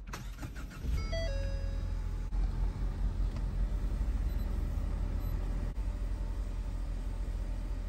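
A car engine starts and idles with a low hum.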